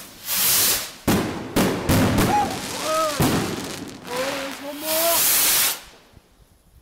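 Fireworks bang and crackle in the night sky.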